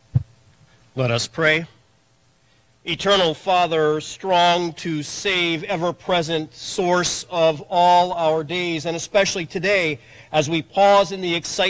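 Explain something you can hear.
A man speaks steadily through loudspeakers in a large echoing hall.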